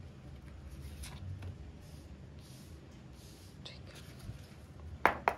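Playing cards slide and slap softly onto a cloth-covered table.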